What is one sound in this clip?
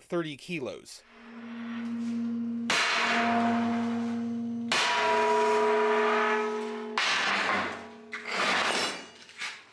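A sledgehammer strikes a steel plate, which rings loudly after each blow.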